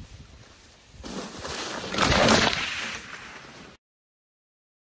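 Bike tyres crunch over dry leaves close by.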